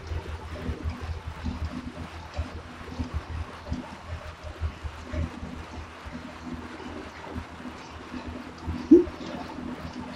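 A young woman talks calmly into a nearby microphone.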